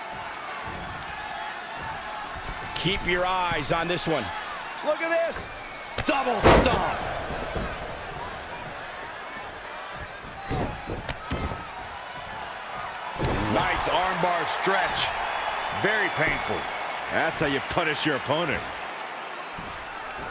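A crowd cheers and murmurs in a large arena.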